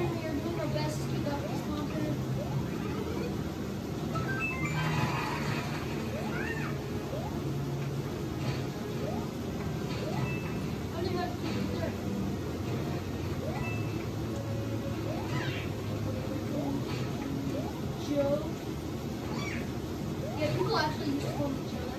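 Video game music plays from a television.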